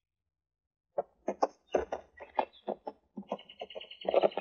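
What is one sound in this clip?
A horse's hooves clop at a steady trot.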